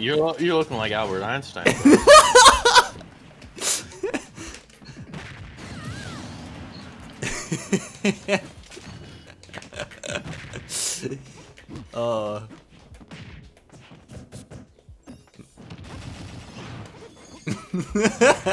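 Video game fighting sounds hit and whoosh.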